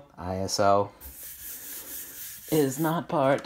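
A hand rubs across a chalkboard.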